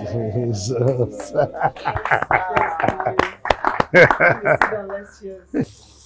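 A man claps his hands.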